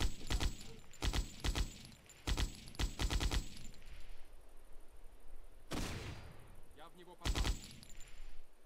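A machine gun fires short, loud bursts.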